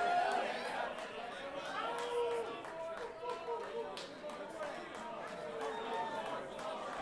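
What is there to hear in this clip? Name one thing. A crowd of people chatters loudly in a large echoing room.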